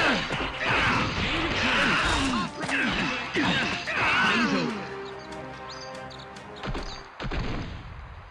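Heavy impacts boom as fighters are knocked down.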